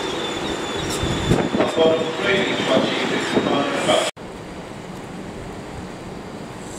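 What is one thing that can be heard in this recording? A train rolls slowly past, rumbling on the tracks.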